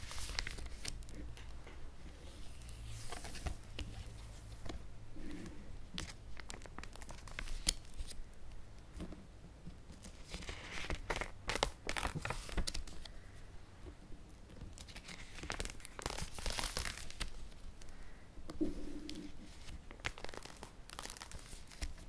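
Plastic album pages crinkle and rustle as they are turned by hand.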